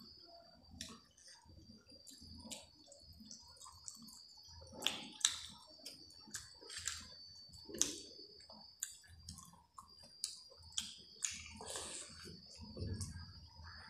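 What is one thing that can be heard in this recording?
A woman chews food with wet, smacking sounds close to a microphone.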